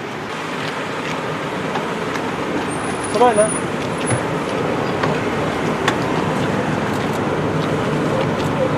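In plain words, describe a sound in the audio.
Several men talk and murmur close by in a bustling crowd.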